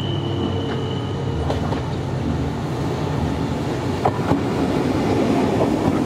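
A train rumbles closer along the tracks and passes close by.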